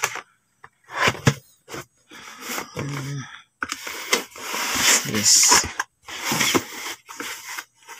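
Paper bags rustle and crinkle as they are moved.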